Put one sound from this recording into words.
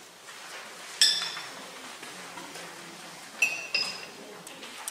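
A porcelain cup clinks against its saucer.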